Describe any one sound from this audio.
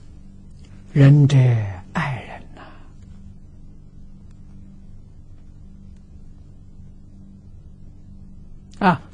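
An elderly man speaks slowly and calmly into a close microphone.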